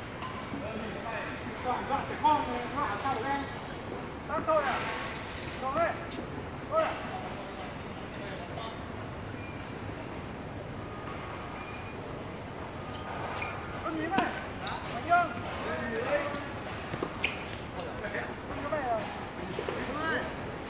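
Men talk between points across a tennis court.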